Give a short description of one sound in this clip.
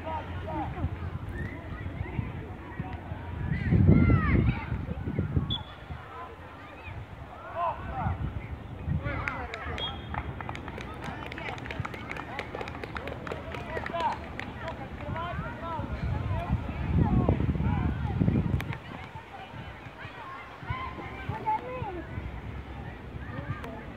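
Young players shout and call out to each other across an open field, heard from a distance.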